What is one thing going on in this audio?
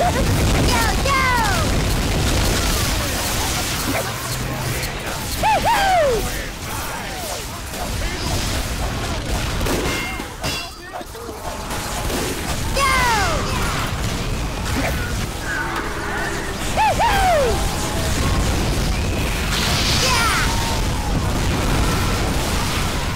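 A heavy weapon whooshes through the air in quick swings.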